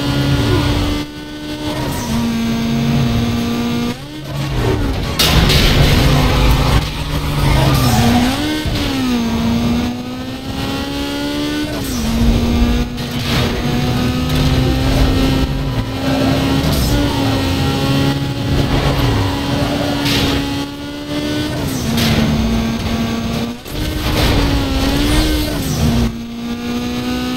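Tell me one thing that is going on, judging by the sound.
A car engine roars at high speed, rising in pitch and dropping as gears shift.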